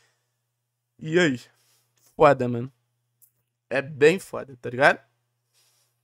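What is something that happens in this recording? A young man speaks with animation, close to a microphone, in short bursts.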